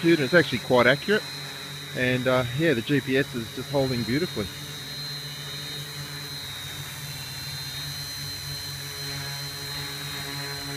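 A multi-rotor drone hovers nearby with a steady, buzzing hum.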